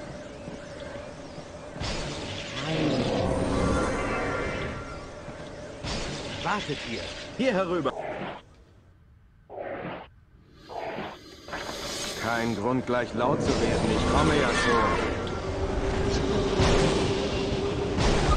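Game combat sounds clash and whoosh.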